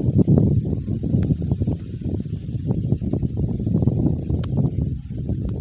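Wind buffets loudly across open countryside.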